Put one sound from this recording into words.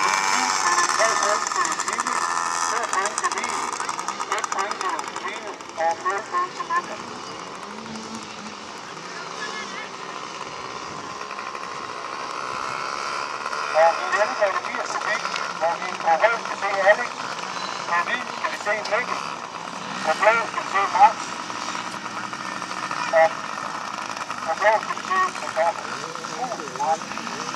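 Small motorbike engines buzz and whine around a dirt track in the distance.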